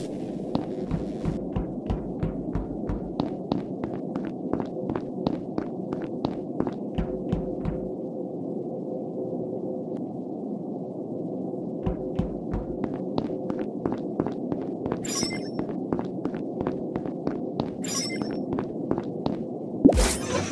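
Quick footsteps patter steadily on a hard floor.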